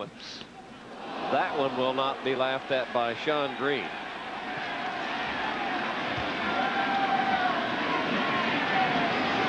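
A large crowd cheers and roars loudly, the noise swelling.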